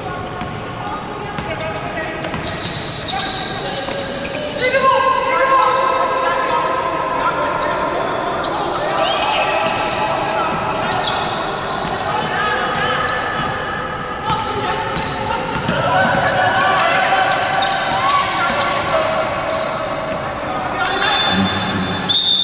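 A crowd in an echoing hall cheers and chants.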